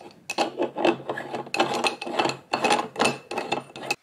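A metal pot is screwed together with a scraping of metal.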